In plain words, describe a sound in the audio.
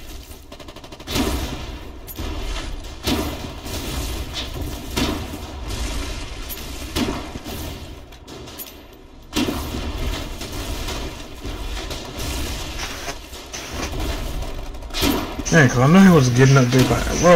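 Shells explode with loud booms.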